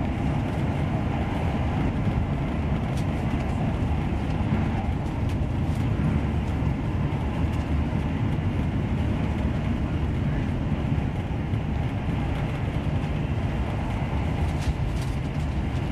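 Train wheels click and clack over rail joints.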